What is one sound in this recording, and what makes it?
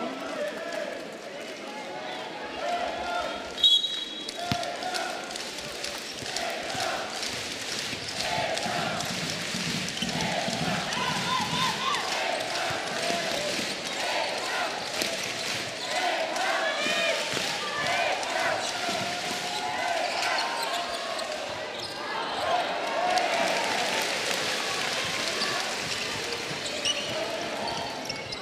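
A large crowd murmurs and cheers in an echoing hall.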